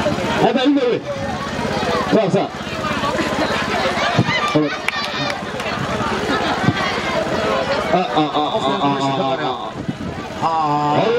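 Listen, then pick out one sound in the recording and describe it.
A crowd of men and women talk over one another close by, outdoors.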